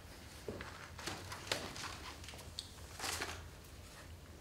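A young man speaks quietly in a large room.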